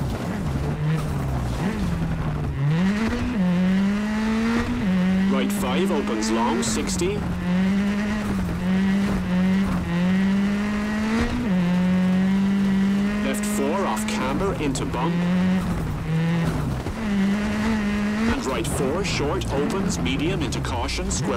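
Gravel crunches and sprays under a car's tyres.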